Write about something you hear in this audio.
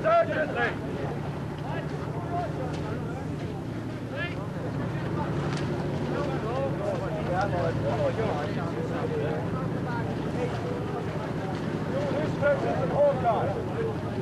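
Several men talk over one another in a crowd.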